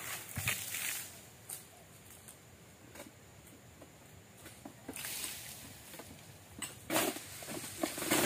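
Palm fronds rustle softly in a breeze.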